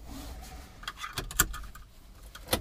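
A seatbelt buckle clicks shut.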